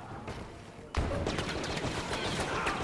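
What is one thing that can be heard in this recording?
Blaster shots fire in sharp bursts.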